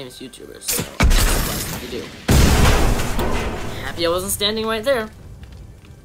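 Gunshots blast loudly in quick bursts.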